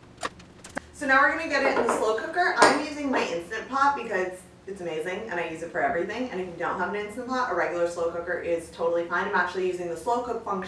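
A young woman speaks calmly and clearly into a nearby microphone.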